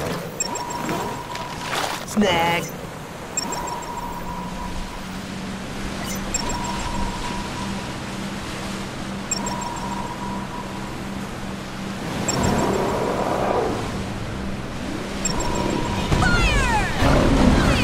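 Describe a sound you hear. A small boat motor hums steadily.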